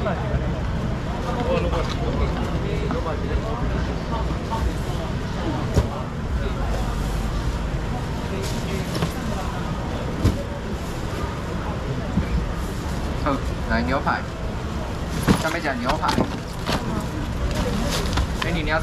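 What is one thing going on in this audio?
A busy crowd murmurs and chatters nearby.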